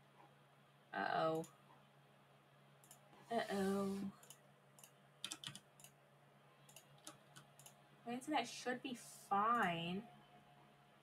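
A young woman speaks in short bursts, close to a headset microphone.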